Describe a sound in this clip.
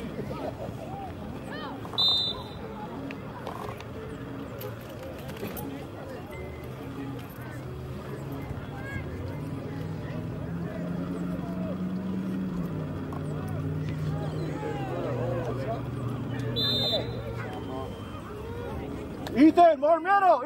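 Young players and spectators call and shout in the distance outdoors.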